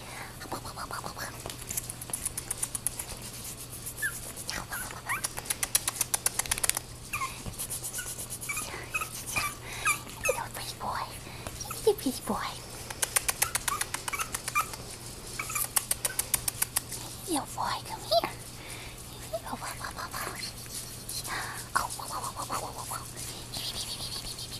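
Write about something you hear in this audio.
A puppy yips and squeaks playfully close by.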